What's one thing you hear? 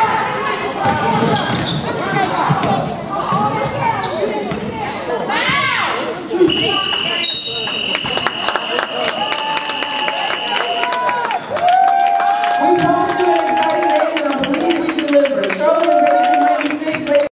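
Sneakers squeak sharply on a wooden court in an echoing gym.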